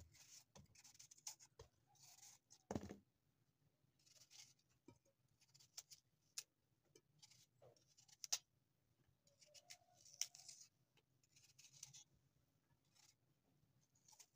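A knife scrapes and slices through a raw potato close by.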